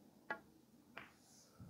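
Billiard balls click together.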